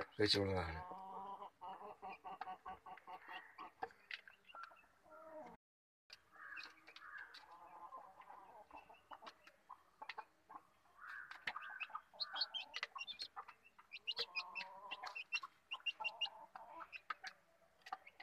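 Young chickens cheep softly.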